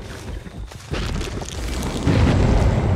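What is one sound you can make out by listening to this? Dry stalks rustle and swish as something pushes through them.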